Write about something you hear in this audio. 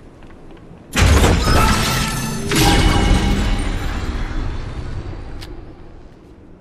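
A magic energy blast bursts with a loud whooshing boom.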